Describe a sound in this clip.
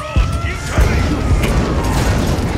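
Game explosions thump loudly.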